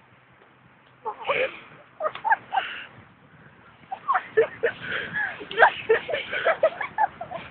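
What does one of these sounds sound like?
Young people shout and laugh outdoors nearby.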